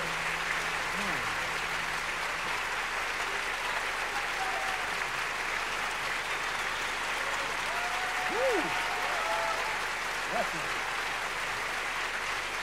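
A large crowd applauds and cheers in a big echoing hall.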